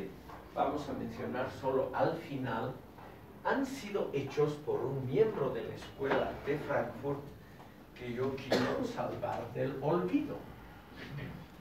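An elderly man speaks with animation to a room.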